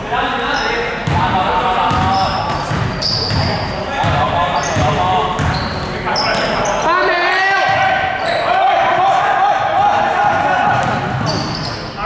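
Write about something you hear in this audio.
Young men call out to each other across the court.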